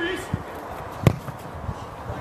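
A ball is kicked hard.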